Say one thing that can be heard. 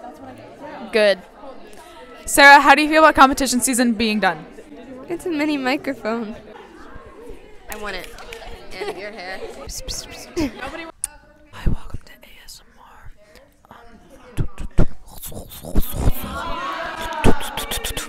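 Young women speak and laugh into a close microphone with animation.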